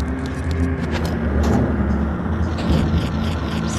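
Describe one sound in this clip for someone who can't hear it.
A heavy door slides open.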